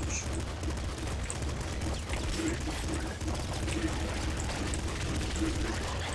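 Rapid video game gunfire crackles and pops.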